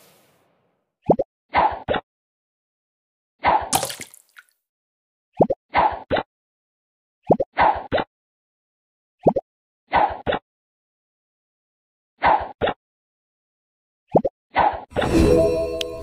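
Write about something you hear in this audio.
A bubble is shot with a soft whoosh.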